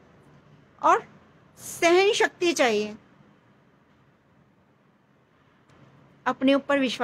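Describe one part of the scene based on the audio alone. A young woman speaks close up with animation, in short bursts.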